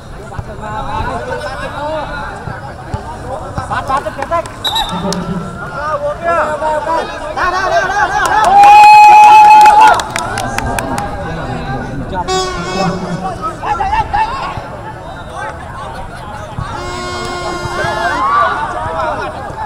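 Men shout to each other outdoors at a distance.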